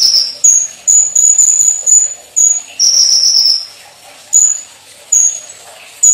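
A small bird sings close by in loud, high, piercing whistled bursts.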